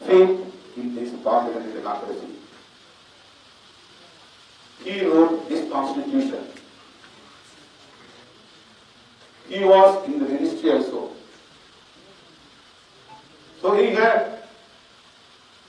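A middle-aged man speaks into a microphone in slow, emphatic bursts with pauses between them.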